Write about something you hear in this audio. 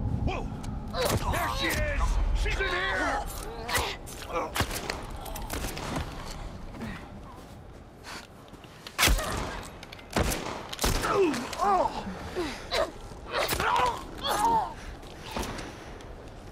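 A man grunts and groans while struggling in a fight.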